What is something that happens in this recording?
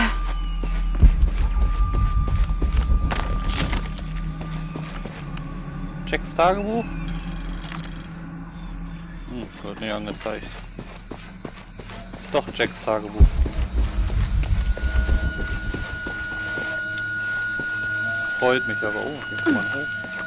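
Footsteps crunch on dirt and stones.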